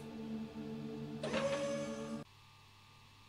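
Steady electronic game tones ring out, then cut off abruptly.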